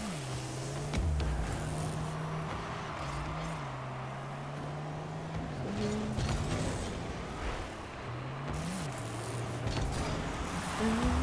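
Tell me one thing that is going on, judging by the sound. A ball thuds as a car hits it.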